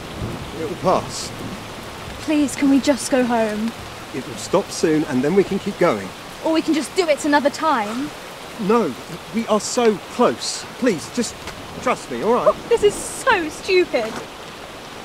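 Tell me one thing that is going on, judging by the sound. A young girl speaks softly and fearfully nearby.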